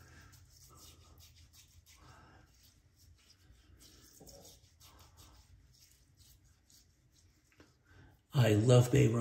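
Hands rub and pat skin softly.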